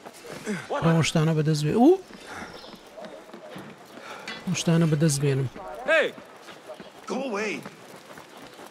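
A young man sings and talks animatedly into a close microphone.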